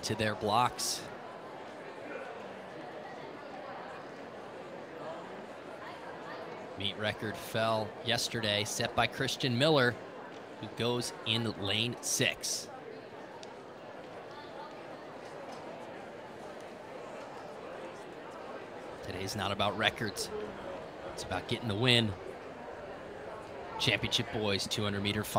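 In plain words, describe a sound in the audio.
A large crowd murmurs in an open-air stadium.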